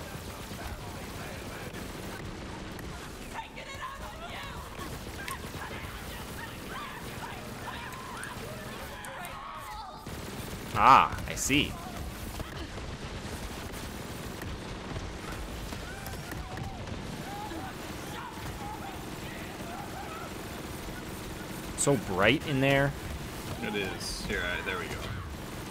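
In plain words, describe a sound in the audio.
Guns fire rapid bursts of shots.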